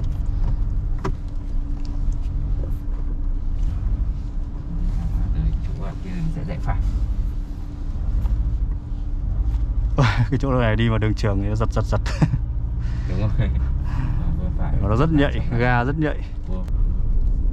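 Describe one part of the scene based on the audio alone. A car engine hums low and steady from inside the cabin.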